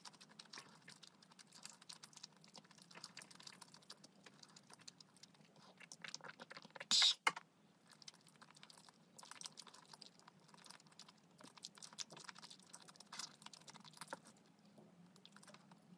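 A young woman chews food with soft, wet smacking sounds, close to the microphone.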